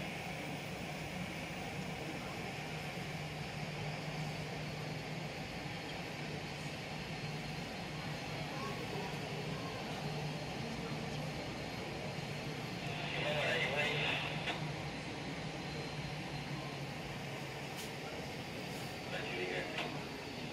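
A jet airliner's engines whine and rumble steadily as it taxis nearby.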